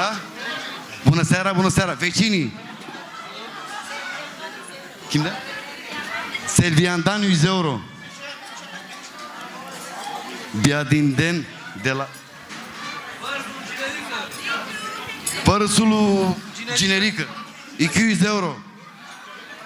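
A man sings loudly into a microphone with echo.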